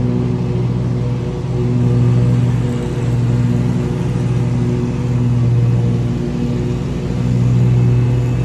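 A riding mower's engine drones steadily close by, rising and falling slightly.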